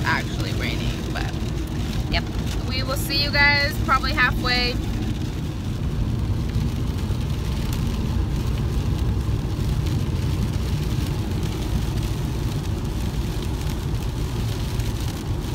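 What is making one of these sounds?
Rain patters on a car's windows.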